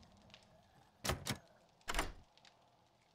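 A lockpick snaps with a sharp click.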